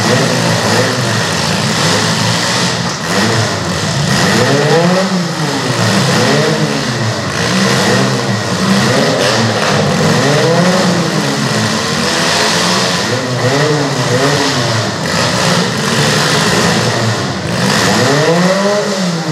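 Car engines roar and rev up and down in a large echoing arena.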